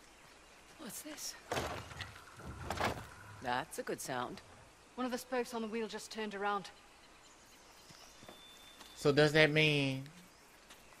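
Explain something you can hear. A second young woman answers in a lively voice, heard close up.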